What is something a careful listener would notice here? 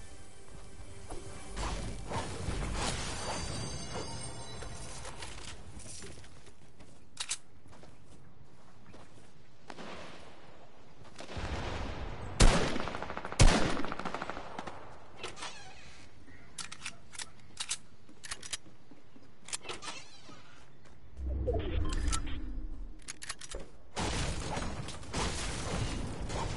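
A pickaxe smashes wood with sharp knocks.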